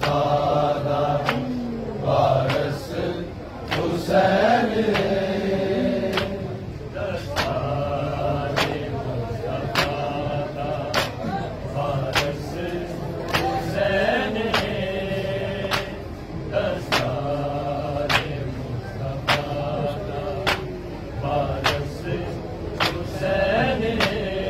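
A crowd of men chant a mournful lament together.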